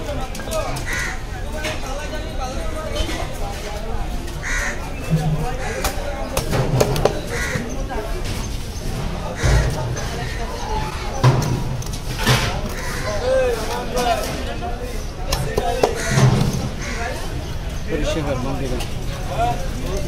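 A heavy blade chops through fish with dull thuds.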